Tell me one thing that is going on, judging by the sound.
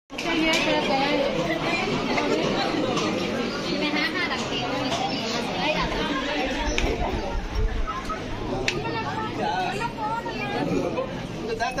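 Many men and women talk and murmur nearby.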